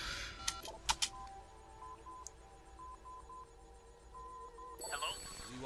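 A phone beeps in short, steady electronic tones.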